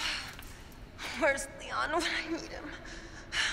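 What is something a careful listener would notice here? A young woman mutters softly to herself.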